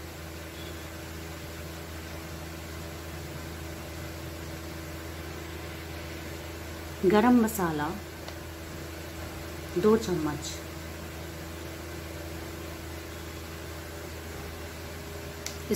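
A small spoon clinks against a metal bowl.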